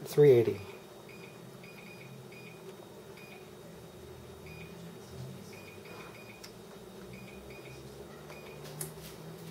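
An appliance beeps briefly as its buttons are pressed.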